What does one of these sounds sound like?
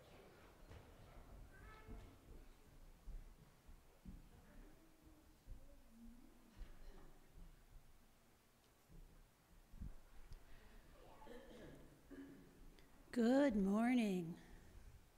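An elderly woman speaks calmly into a microphone in a large echoing hall.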